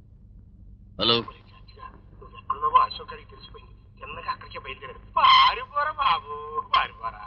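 A man talks on a telephone.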